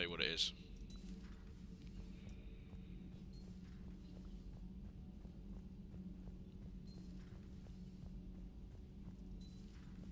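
Footsteps thud quickly and steadily on a metal floor.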